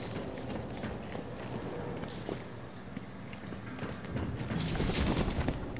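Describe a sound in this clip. Footsteps tap on a metal stairway.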